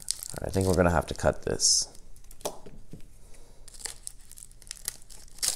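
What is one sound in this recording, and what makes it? Plastic card sleeves rustle and click as they are flipped through by hand.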